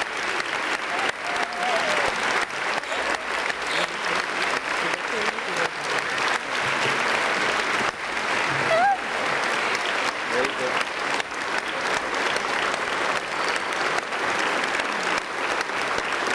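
People in a crowd cheer and whoop.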